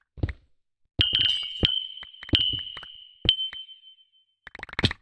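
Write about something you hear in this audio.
Small high popping blips sound as items are picked up.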